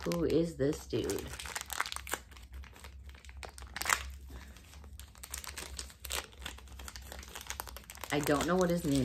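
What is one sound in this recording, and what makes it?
Plastic wrapping crinkles and rustles in a woman's hands.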